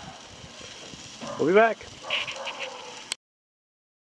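Food sizzles in a hot skillet.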